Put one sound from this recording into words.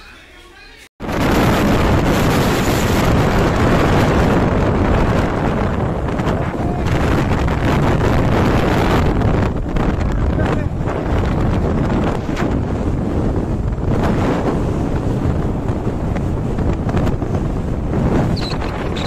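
Wind roars loudly against a moving motorbike.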